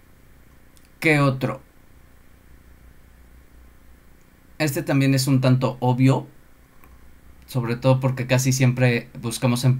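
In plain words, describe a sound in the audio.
A man speaks calmly through an online call, in short bursts.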